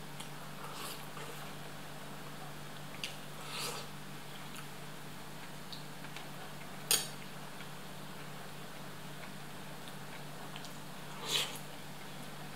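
A man slurps soup from a spoon.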